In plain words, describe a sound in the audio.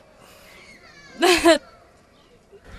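A middle-aged woman laughs close to a microphone.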